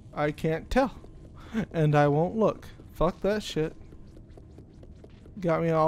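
Small footsteps run across wooden floorboards.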